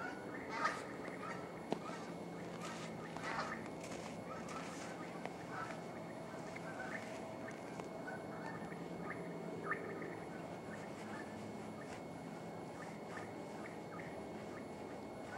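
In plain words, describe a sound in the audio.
Eagles call out with short, high cries from across the ice.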